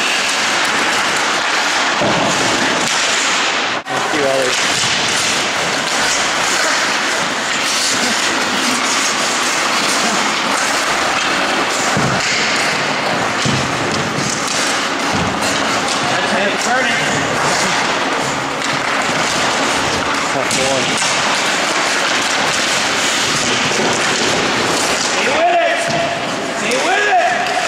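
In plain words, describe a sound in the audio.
Hockey sticks clack against each other and the ice.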